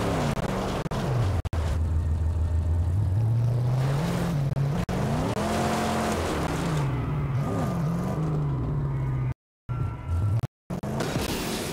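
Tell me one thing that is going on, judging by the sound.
A car engine roars and revs, rising and falling in pitch.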